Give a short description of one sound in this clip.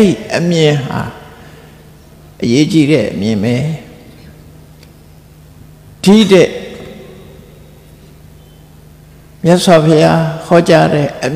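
An elderly man speaks calmly and slowly into a microphone, with long pauses between phrases.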